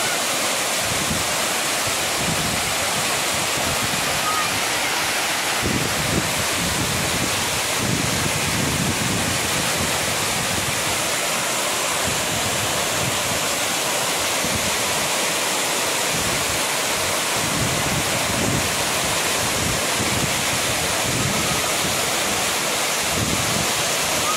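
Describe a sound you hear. A waterfall roars loudly, with water crashing steadily into a pool.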